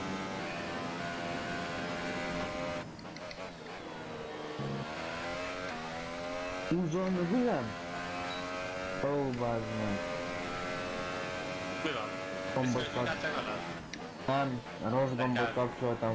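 A racing car engine roars and whines, its pitch rising and falling as it speeds up and shifts gears.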